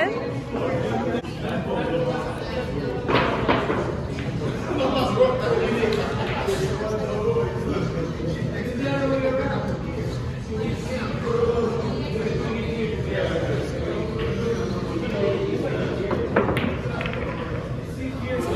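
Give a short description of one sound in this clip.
Men and women chatter in the background of a busy, echoing hall.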